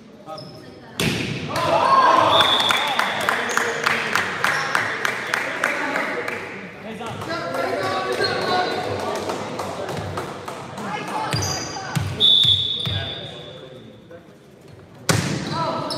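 A volleyball is struck with loud slaps.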